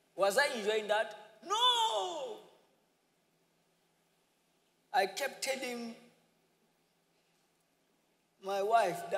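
A man preaches with animation through a microphone in a large echoing hall, pausing between phrases.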